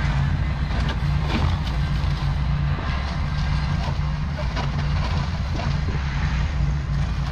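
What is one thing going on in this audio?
A riding mower engine hums steadily and slowly fades as it drives away.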